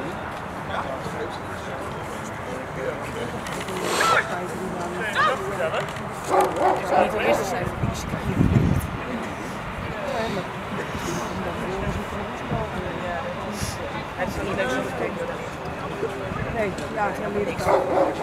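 A dog growls and tugs at a bite sleeve.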